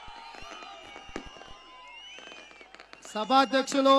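Fireworks crackle and pop.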